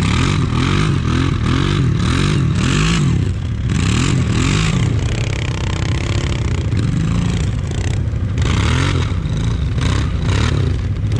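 A quad bike engine idles and revs unevenly close by.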